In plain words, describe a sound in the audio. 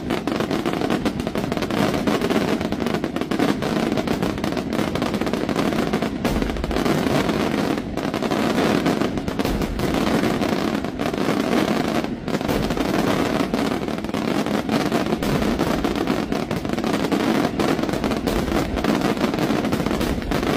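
Fireworks bang and crackle rapidly and continuously overhead.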